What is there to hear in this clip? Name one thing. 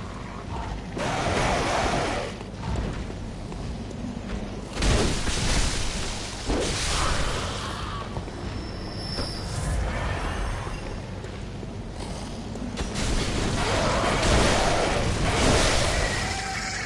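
Heavy blades slash and strike with wet impacts.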